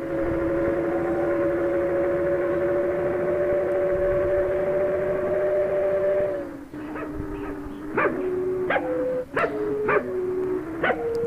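A bus engine drones steadily, then drops in pitch and shifts unevenly.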